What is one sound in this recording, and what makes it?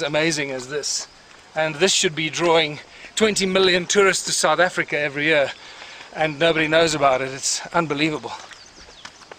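A middle-aged man talks with animation close by, outdoors.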